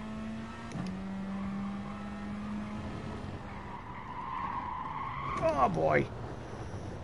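A racing car engine whines and revs through gear changes.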